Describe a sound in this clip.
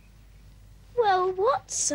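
A boy speaks quietly nearby.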